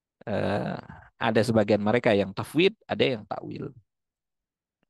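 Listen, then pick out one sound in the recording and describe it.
A man speaks calmly into a headset microphone, heard over an online call.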